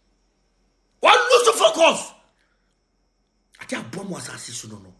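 A man speaks with emphasis close to a phone microphone.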